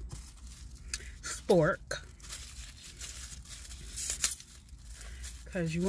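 Plastic wrapping crinkles in a woman's hands.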